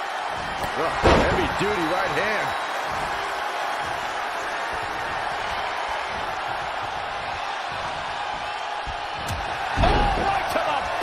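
A body slams heavily onto a wrestling mat with a thud.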